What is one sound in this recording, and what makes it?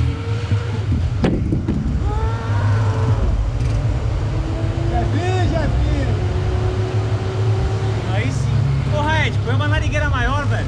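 Street traffic rumbles steadily in the background.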